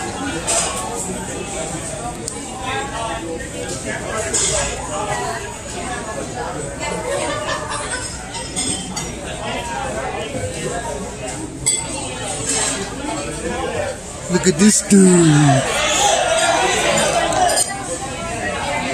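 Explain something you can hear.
Adult men and women chat close by around a table.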